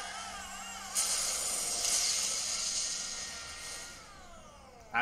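A car crashes and tumbles with a rushing roar.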